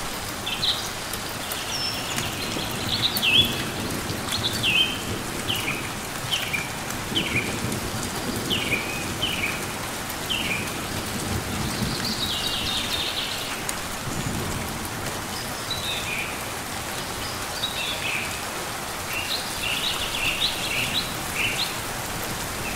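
A small bird chirps in short, repeated high notes.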